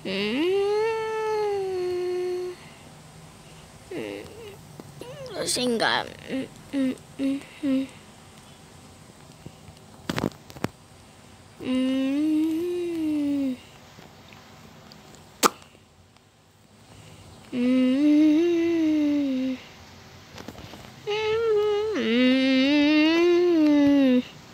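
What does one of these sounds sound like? A young boy sings in long, drawn-out tones close to a microphone.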